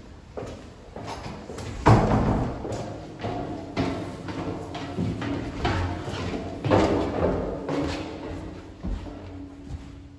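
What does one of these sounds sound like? Footsteps clatter on metal stairs.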